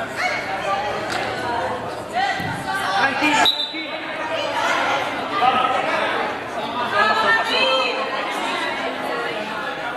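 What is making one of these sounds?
Young women shout and call out with animation nearby.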